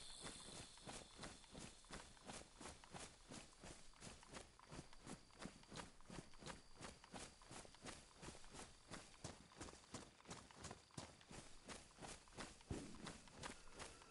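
Quick footsteps swish through tall grass.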